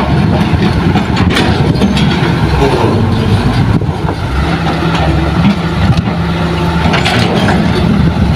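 An excavator engine drones steadily.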